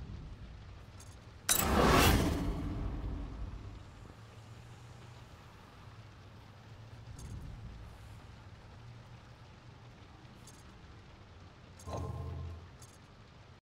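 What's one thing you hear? Short game menu clicks sound now and then.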